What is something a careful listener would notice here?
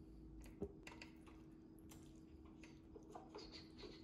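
A shaker bottle is tapped and shaken over a bowl of food.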